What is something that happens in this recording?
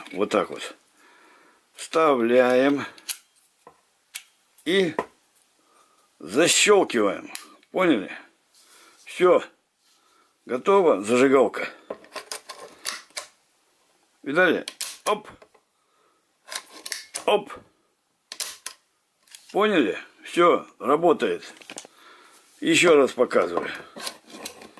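Metal gun parts click and scrape as they are handled.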